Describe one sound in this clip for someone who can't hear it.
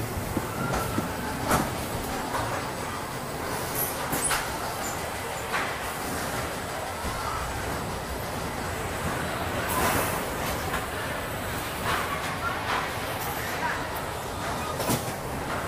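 Metal clanks and knocks sound now and then from the ride machinery.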